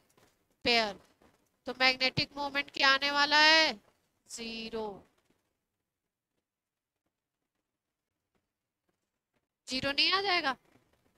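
A woman speaks with animation into a close microphone, in short bursts.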